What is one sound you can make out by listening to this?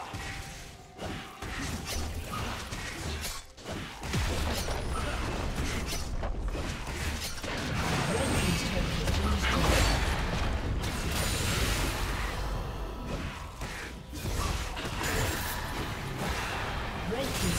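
Game spell effects and attacks clash and crackle in a fight.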